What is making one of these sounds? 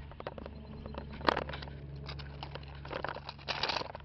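A small toy tractor rattles and clicks as it rolls over grass.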